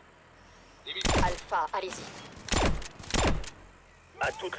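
Gunshots ring out in loud bursts.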